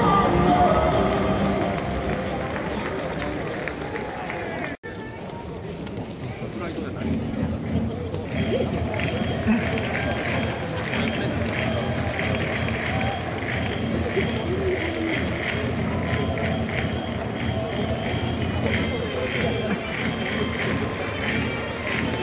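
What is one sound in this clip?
A large crowd murmurs and chatters in a big open stadium.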